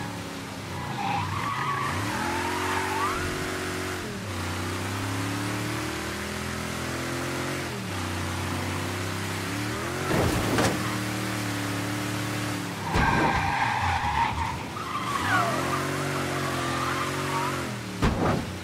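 Car tyres squeal on the road.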